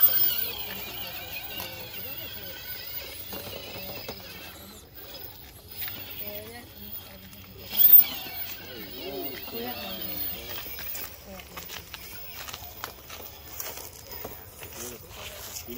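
The electric motor of a radio-controlled rock crawler whines as it climbs.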